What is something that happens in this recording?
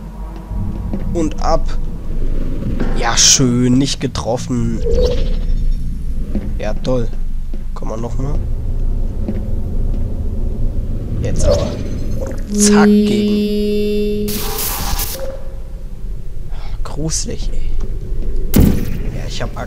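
A sci-fi gun fires with sharp electric zaps.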